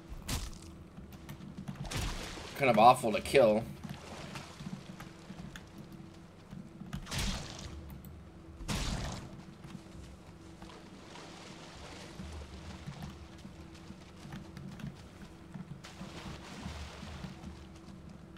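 Footsteps rustle through tall grass.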